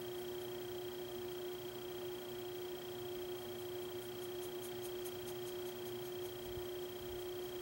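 A brush strokes softly across paper.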